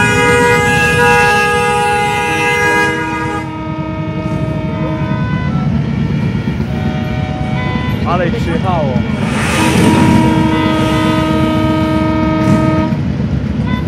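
A column of heavy cruiser motorcycles rumbles past.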